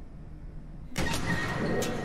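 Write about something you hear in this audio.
A heavy door creaks open and bangs.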